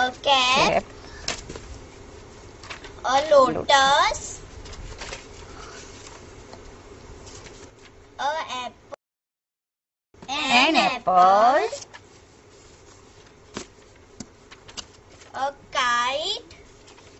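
A young girl speaks clearly into a microphone in short bursts.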